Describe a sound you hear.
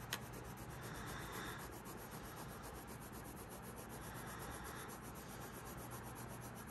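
A coloured pencil scratches rapidly back and forth on paper.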